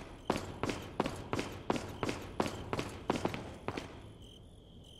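Footsteps tap quickly on a hard stone floor.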